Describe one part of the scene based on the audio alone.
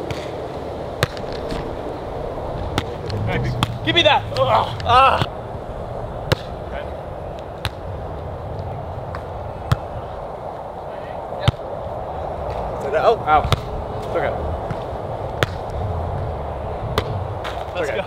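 A volleyball is struck with hands with sharp slaps.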